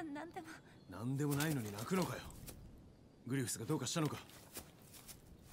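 A man asks questions with concern.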